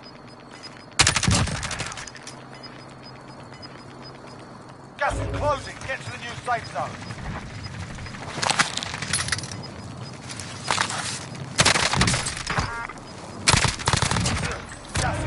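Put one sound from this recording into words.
Rifle shots crack in loud, sudden bursts.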